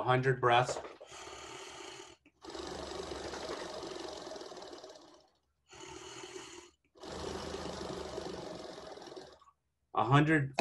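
A man blows hard through a plastic breathing device in long, steady puffs.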